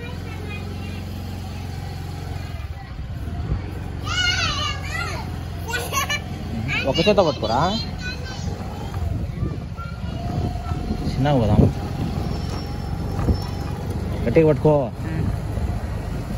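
A scooter engine hums steadily at low speed.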